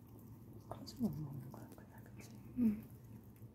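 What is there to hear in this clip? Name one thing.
A cat meows softly close by.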